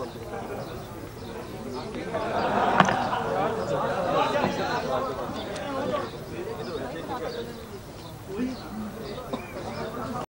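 A crowd of men murmurs and talks at once nearby.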